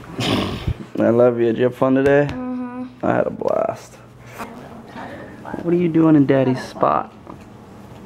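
A young boy talks playfully up close.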